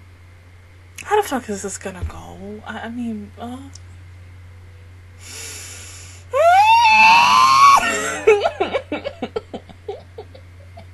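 A young woman sings softly into a close microphone.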